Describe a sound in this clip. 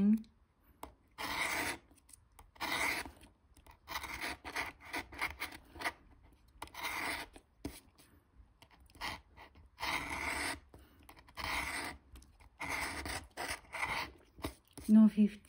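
A plastic scraper scratches rapidly across a card in short, rasping strokes.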